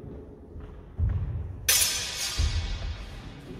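Wooden sticks clack together sharply in a large echoing hall.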